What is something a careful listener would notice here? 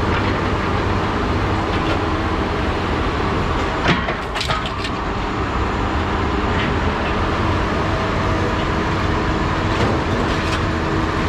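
A heavy machine engine rumbles steadily.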